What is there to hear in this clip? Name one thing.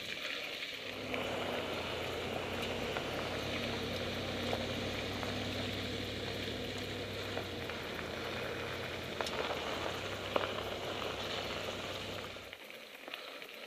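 A pickup truck's engine rumbles nearby as it drives past.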